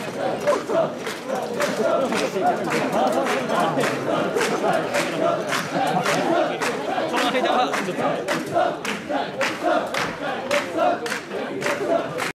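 Metal ornaments on a carried shrine jingle and clack with each step.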